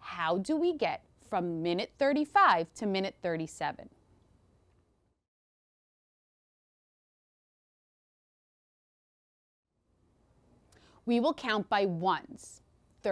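A woman speaks clearly and calmly into a close microphone.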